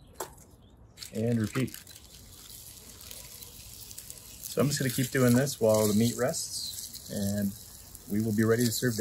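Batter sizzles in a hot pan.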